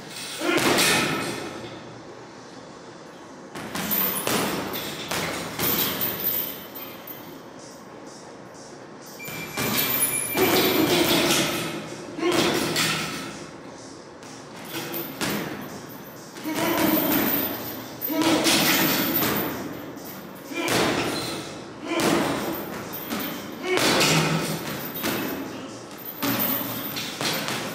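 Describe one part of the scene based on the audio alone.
Gloves smack a hanging ball bag in quick rapid hits.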